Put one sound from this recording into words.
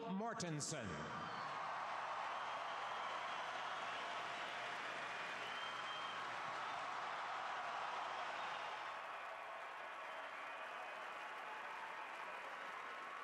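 A large crowd cheers and applauds in a big echoing arena.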